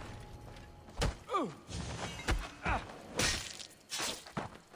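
A blade strikes a man with sharp thuds.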